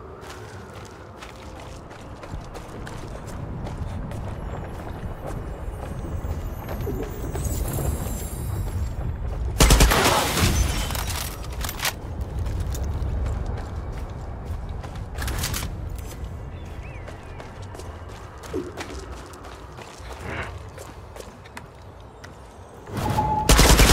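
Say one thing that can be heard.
Footsteps tread steadily on stone.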